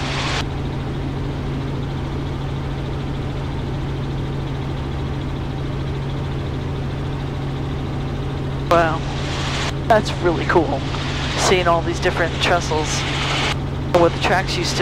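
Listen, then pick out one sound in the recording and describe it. A helicopter engine and rotor drone steadily, heard from inside the cabin.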